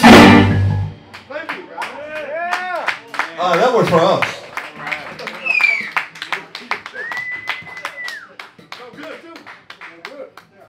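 An electric guitar plays a bending lead solo.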